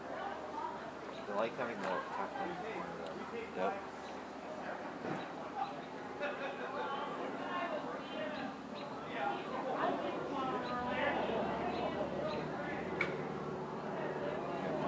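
Bees buzz steadily around a hive.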